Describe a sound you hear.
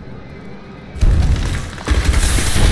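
A fiery blast whooshes and roars loudly.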